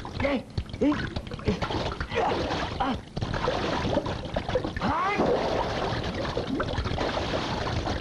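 Water splashes as a man thrashes in a river.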